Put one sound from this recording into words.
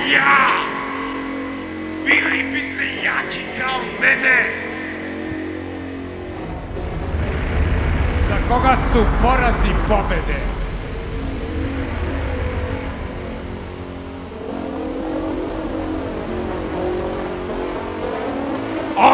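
Loud music plays.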